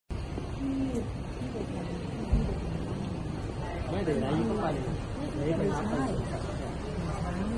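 A crowd of people chatter nearby.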